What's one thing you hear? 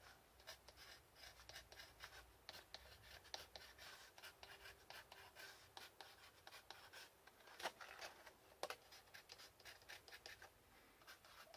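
A pencil scratches on wood.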